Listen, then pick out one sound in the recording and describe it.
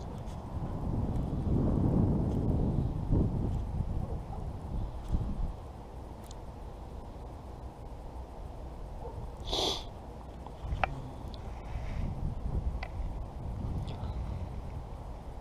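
Wind rumbles across the microphone outdoors, gusting and easing.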